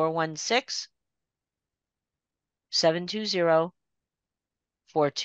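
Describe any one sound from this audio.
An elderly woman speaks calmly over an online call, with pauses.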